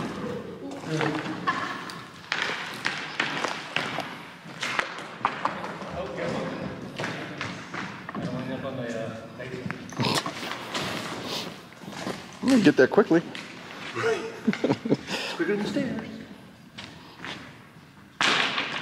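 A man talks with animation in a large echoing hall.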